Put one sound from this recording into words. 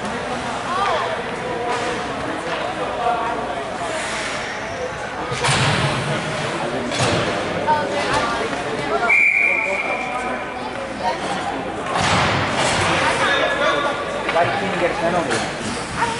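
Spectators and players chatter in an echoing indoor rink.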